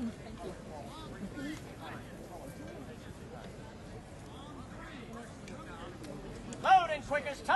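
Men murmur and talk quietly outdoors.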